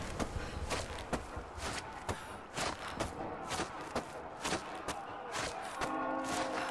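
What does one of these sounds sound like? Hands grip and pull along a rope in quick, rhythmic knocks.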